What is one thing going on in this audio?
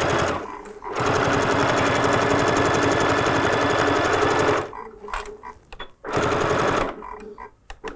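A sewing machine runs fast, its needle stitching with a rapid, steady whirr.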